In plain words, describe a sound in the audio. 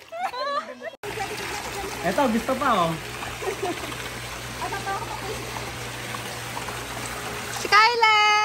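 Water splashes and pours down a slide.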